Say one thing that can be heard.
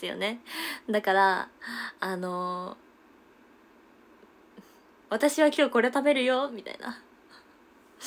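A young woman talks cheerfully and animatedly, close to the microphone.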